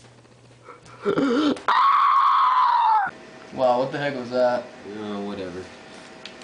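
Young men laugh and shout nearby.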